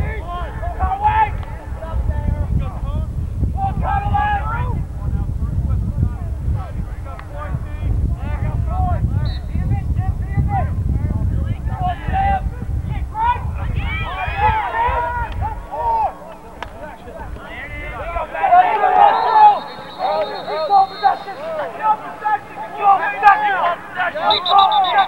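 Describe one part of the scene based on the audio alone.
Men and boys shout and call out across an open field outdoors.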